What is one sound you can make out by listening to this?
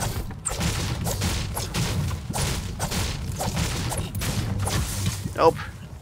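A pickaxe strikes metal again and again in quick, regular blows.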